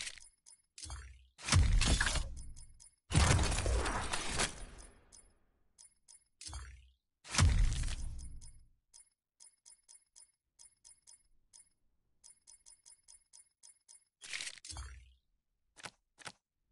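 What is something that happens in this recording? Short electronic menu clicks tick in quick runs.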